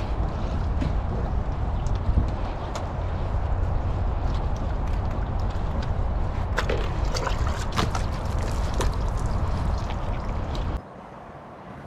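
A cloth squeaks and rubs against car glass close by.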